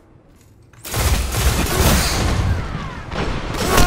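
A video game rifle fires in rapid bursts.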